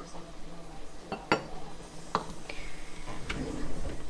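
A plastic funnel clicks down onto a glass jar.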